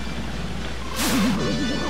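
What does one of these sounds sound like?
A quick whooshing burst sounds as a character spins.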